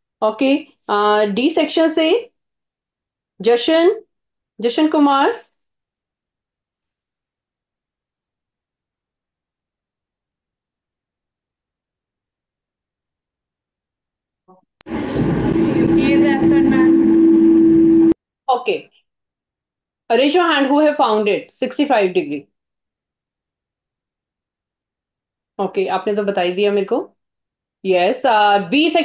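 A woman speaks calmly and clearly through a microphone.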